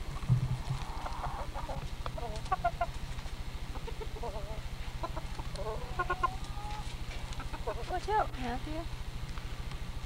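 Chickens cluck softly close by.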